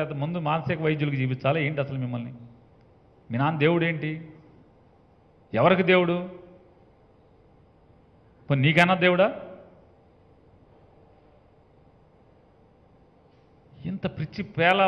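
A middle-aged man speaks firmly into a microphone in short bursts with pauses.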